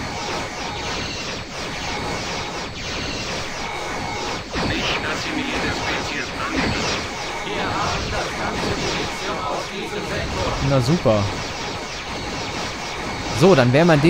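Laser weapons fire in quick zapping bursts.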